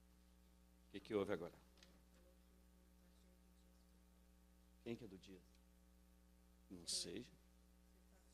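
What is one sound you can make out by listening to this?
A man speaks briefly into a microphone in short bursts.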